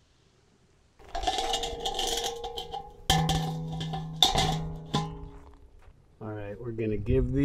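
A metal bowl scrapes and rings against a grill.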